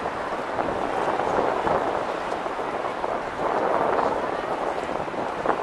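Footsteps shuffle on pavement.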